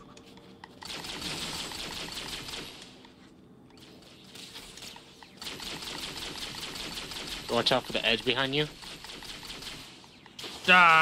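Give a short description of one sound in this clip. A plasma weapon fires in rapid bursts.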